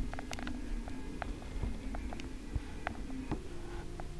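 Thread rasps softly as it is pulled through stiff fabric.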